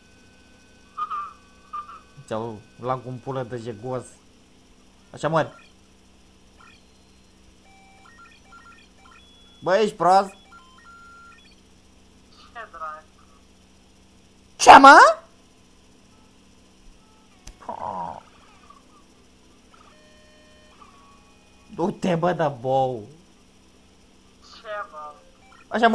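Electronic game blips and beeps sound now and then.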